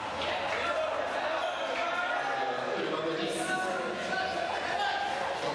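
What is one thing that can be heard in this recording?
A crowd of young men chatters and calls out in an echoing hall.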